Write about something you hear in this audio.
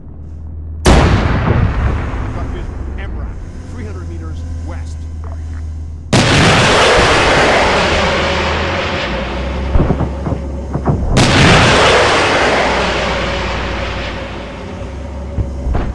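Loud explosions boom and rumble away.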